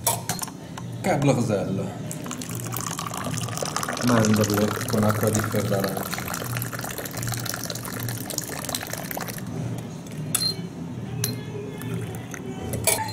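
Tea pours from a metal teapot into a glass with a gurgling splash.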